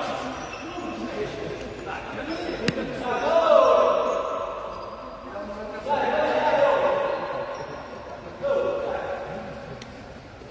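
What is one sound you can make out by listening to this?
Men shout across a large echoing hall.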